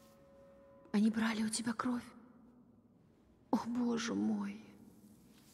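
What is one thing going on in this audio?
A young woman speaks softly and close.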